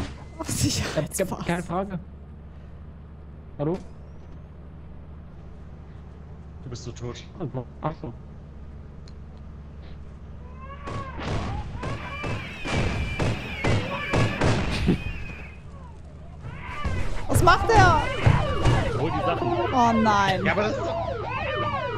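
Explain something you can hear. A young woman talks and laughs close to a headset microphone.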